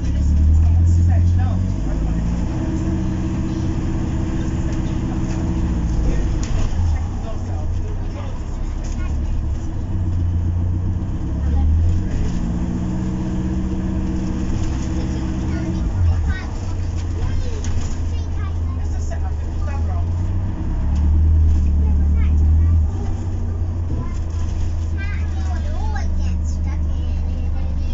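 Loose panels rattle inside the bus.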